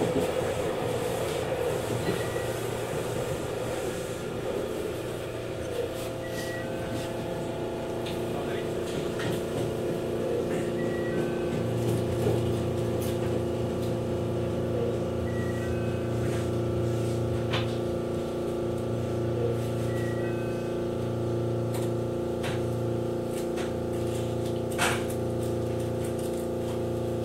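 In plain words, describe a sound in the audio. A train hums steadily as it runs along the tracks.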